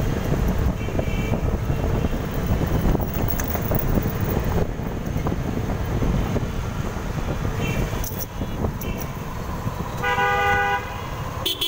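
Wind and tyre noise rush past while riding along a road.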